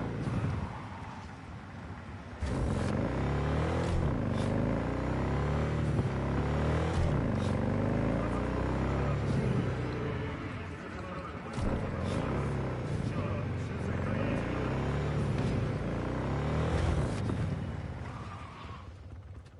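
A motorcycle engine revs up and down as the bike rides along.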